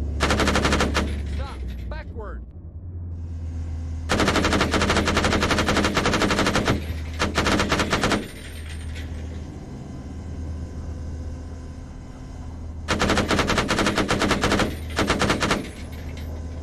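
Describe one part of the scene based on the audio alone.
A heavy cannon fires in rapid bursts.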